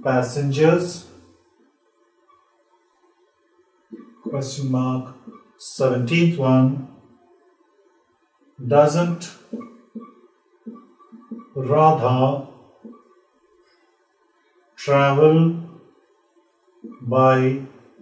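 A man speaks clearly and deliberately, reading out short sentences in bursts with pauses.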